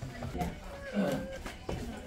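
A paper tag crinkles in a hand.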